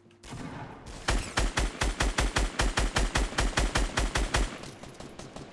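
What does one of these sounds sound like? A gun fires in rapid bursts in a video game.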